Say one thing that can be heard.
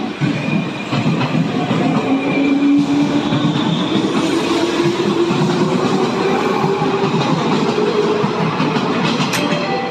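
An electric train motor whines, rising steadily in pitch as the train speeds up.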